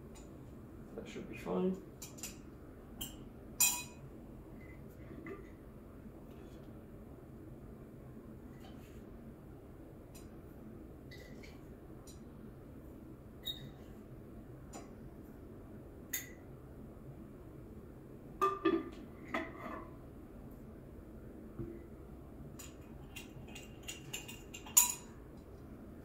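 Small objects clink and knock on a hard counter.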